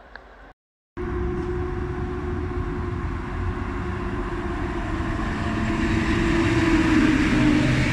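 Train wheels rumble and clatter over the rails, growing louder.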